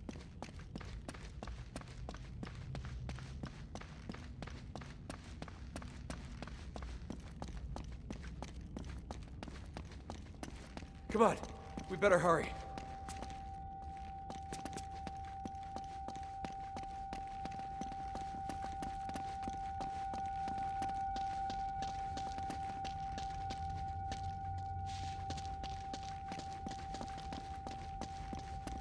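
Footsteps run quickly on stone and up steps.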